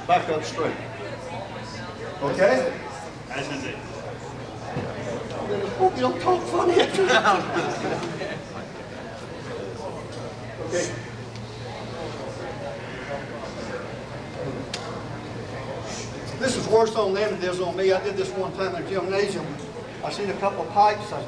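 An elderly man talks calmly to a group.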